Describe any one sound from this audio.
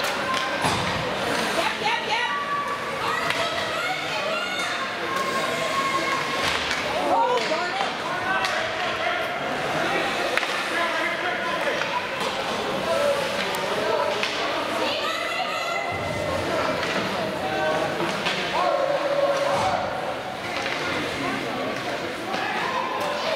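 Spectators talk and call out nearby in an echoing rink.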